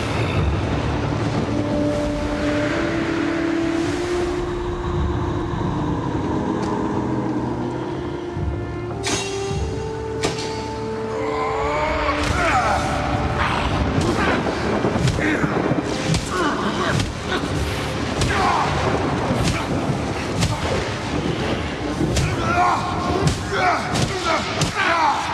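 Icy blasts hiss and roar in bursts.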